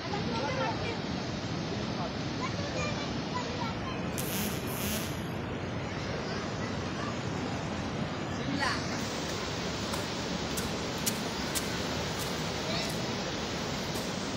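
Floodwater rushes and roars loudly.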